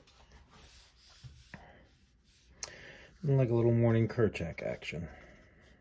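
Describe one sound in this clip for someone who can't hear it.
A pen scratches across paper in quick strokes.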